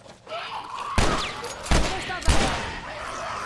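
Three loud gunshots ring out in quick succession.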